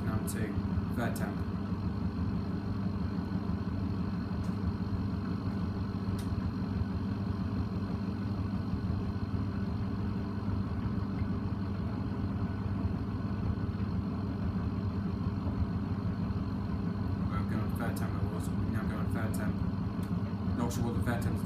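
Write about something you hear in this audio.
Small objects clink against a washing machine drum.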